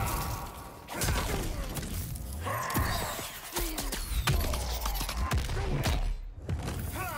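A fiery explosion booms and roars.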